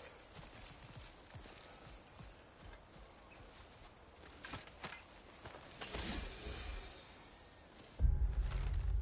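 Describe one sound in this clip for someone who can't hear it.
Footsteps crunch on a stone path.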